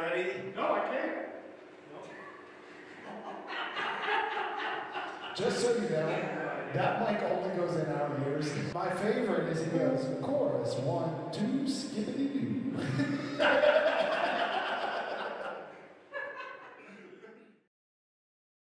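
A middle-aged man speaks with animation into a microphone on a stage.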